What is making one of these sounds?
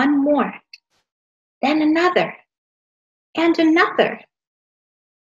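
A young woman reads aloud in short phrases, close to a microphone.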